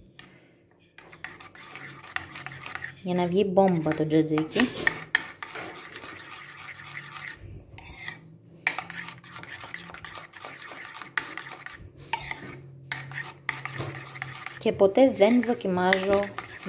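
A metal spoon stirs and scrapes against a bowl.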